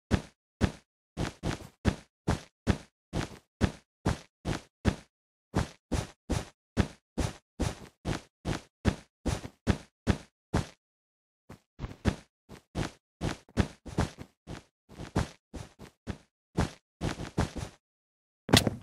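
Blocks are placed one after another in a quick, steady clicking rhythm.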